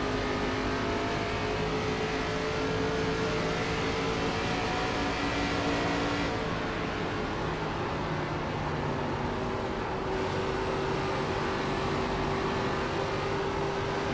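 A racing car engine roars steadily at high speed.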